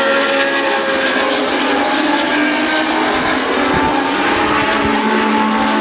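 Racing car engines roar loudly as the cars speed past.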